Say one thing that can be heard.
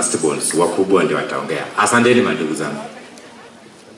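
A man speaks loudly into a microphone, heard through a loudspeaker outdoors.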